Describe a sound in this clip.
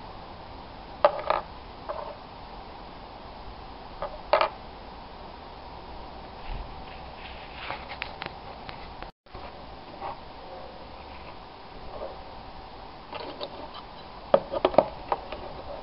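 Metal parts clink and knock against each other and a wooden surface.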